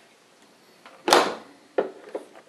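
A dishwasher door slams shut with a thud.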